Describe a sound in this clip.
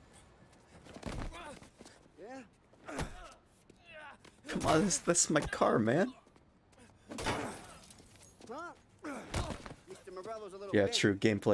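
A man talks roughly and shouts close by.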